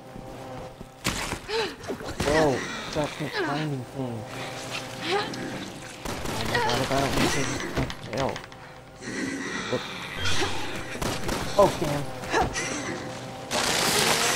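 A creature growls and snarls.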